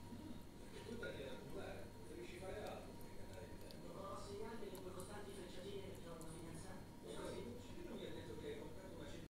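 A cat licks and laps food from a glass dish up close.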